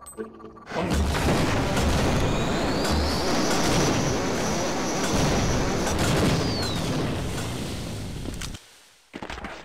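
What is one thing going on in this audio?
An electric beam weapon crackles and hums loudly.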